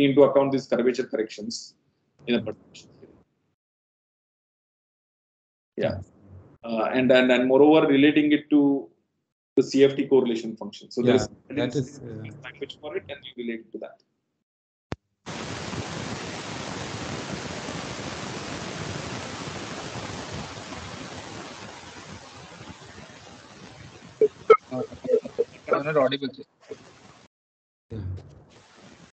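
A man speaks calmly through an online call, with pauses.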